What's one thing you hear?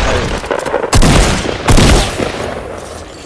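Gunshots fire in loud bursts, echoing briefly.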